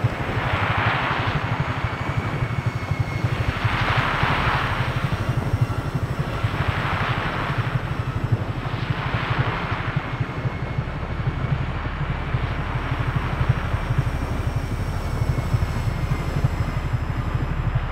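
Wind rushes loudly past in rising and falling gusts.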